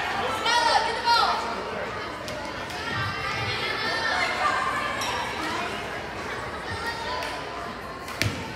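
A crowd of girls and spectators cheers and shouts in a large echoing gym.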